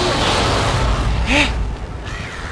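Steam hisses loudly from a vent.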